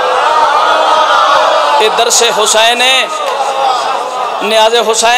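A man speaks loudly and passionately into a microphone, heard through loudspeakers.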